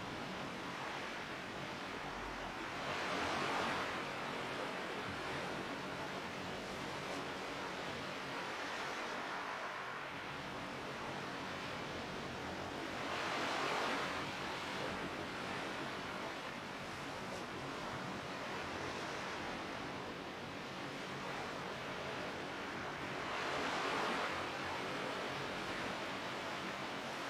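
Water splashes and swishes steadily as a swimmer moves through it.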